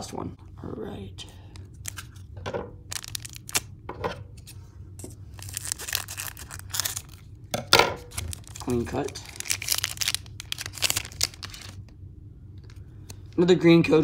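A foil wrapper crinkles and rustles close by.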